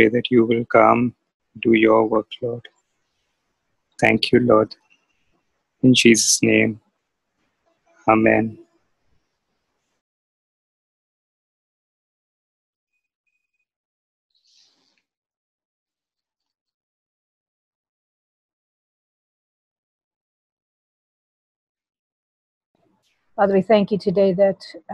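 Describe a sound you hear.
A young woman speaks calmly and clearly close by, in short phrases with pauses.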